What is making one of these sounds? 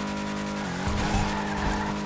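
Car tyres screech as the car spins.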